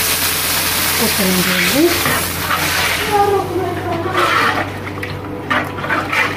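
A spoon stirs thick batter in a pot.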